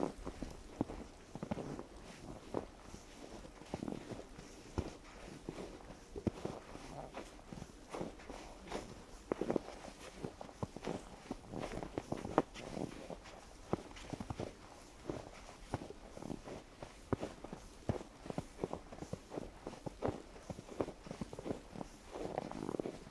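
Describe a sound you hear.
Footsteps crunch steadily through fresh snow.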